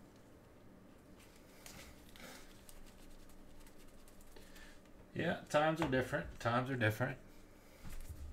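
Trading cards shuffle and rustle in gloved hands.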